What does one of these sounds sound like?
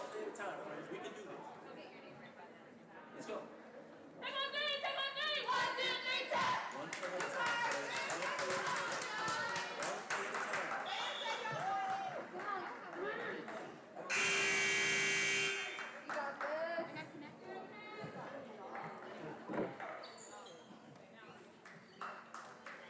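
Young women chatter nearby.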